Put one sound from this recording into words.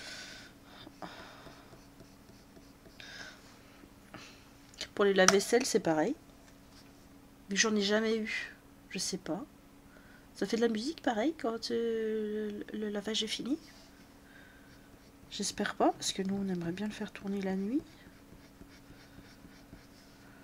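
A coloured pencil scratches softly on paper.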